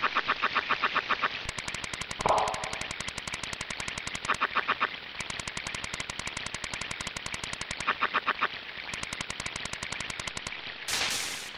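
A fishing reel clicks rapidly as a line is reeled in.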